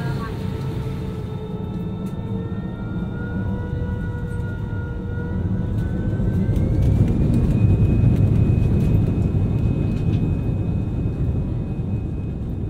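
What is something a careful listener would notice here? A high engine whine slowly rises in pitch.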